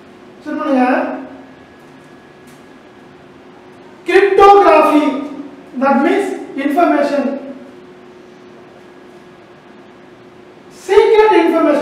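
A man speaks clearly in short bursts, explaining as if teaching.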